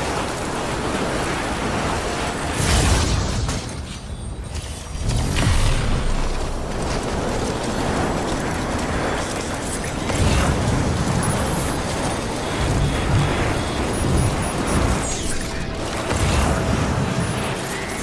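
Wind rushes past a rider sliding along a zip line.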